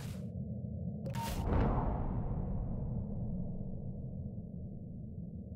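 A bright chime rings out and slowly fades away.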